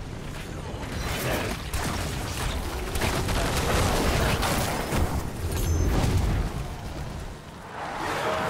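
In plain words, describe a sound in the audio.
Weapons clash and blows land in a fast, loud fight.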